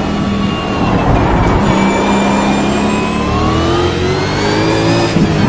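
A race car engine roars steadily, its pitch climbing as it speeds up.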